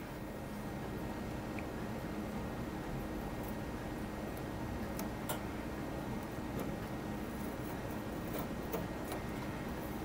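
A thin tool scrapes and taps lightly on plastic.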